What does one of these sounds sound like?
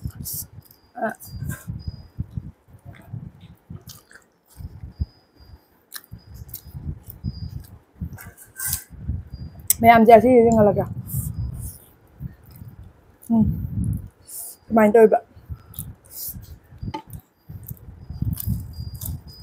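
A young woman chews fried chicken close to a microphone.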